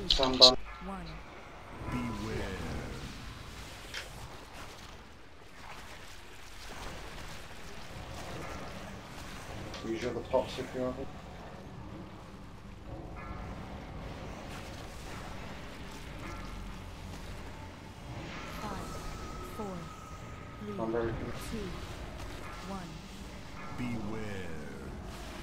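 Spells blast and crackle in a fantasy battle.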